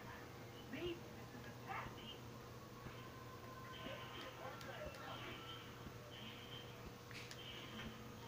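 Video game sound effects play from a television speaker.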